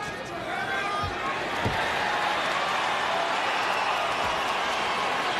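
Bodies thump and shuffle against a padded mat.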